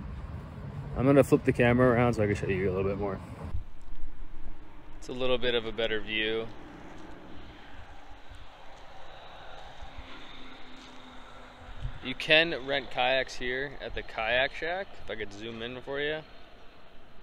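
A young man talks calmly and close up, outdoors.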